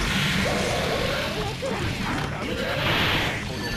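Magic blasts and hits crash loudly.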